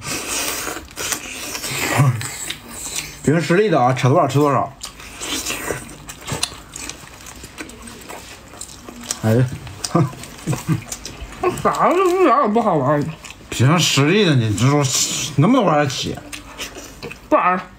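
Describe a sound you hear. Two people chew meat noisily, close by.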